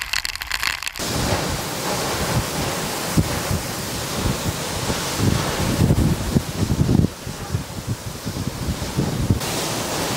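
Strong wind roars and gusts.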